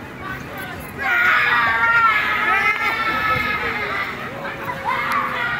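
Young people on a swing ride scream and shout excitedly.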